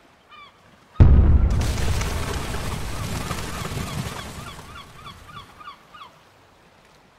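A loud explosion booms and rumbles slowly away.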